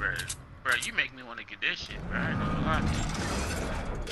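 A bright magical whoosh swirls and shimmers.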